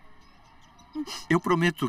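A woman speaks up close in a tearful, shaky voice.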